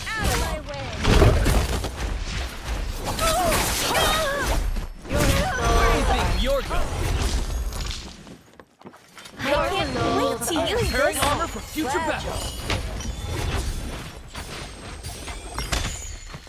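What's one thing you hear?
Swords clash and energy blasts whoosh in a fight.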